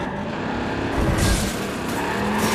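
A truck crashes into a pole with a loud thump.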